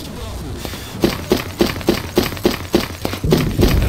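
Footsteps run on hard ground.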